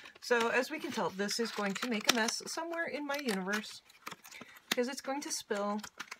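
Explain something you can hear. Plastic packaging crinkles in someone's hands.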